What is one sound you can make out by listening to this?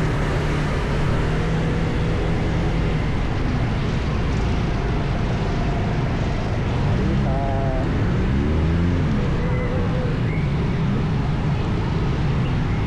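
A scooter engine hums steadily close by while riding.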